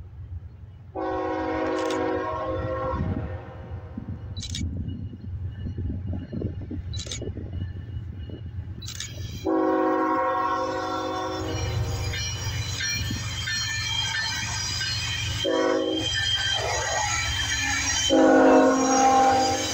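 A train horn blows long, loud blasts that grow closer.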